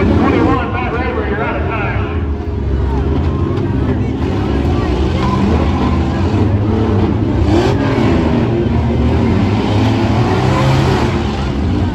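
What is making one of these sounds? Many car engines rumble and rev loudly outdoors.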